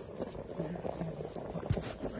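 A pot of broth bubbles and simmers.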